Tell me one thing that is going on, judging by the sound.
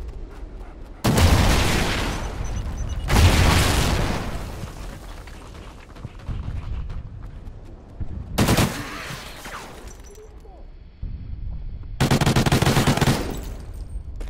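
A rifle fires in loud, echoing bursts.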